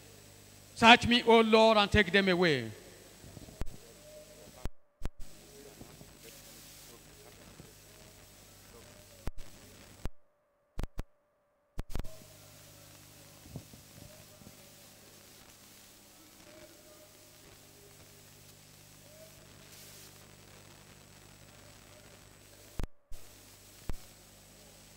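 A man speaks through a microphone and loudspeakers.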